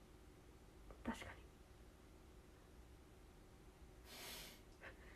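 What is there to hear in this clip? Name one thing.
A young woman sniffles.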